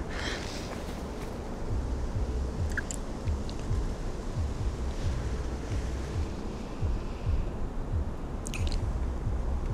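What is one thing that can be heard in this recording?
Two women kiss, lips smacking softly.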